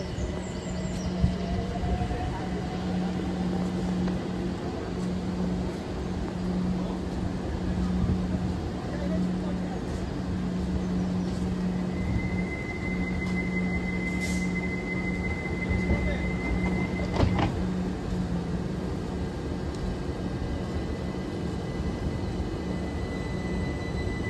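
A train's engine hums steadily at a platform outdoors.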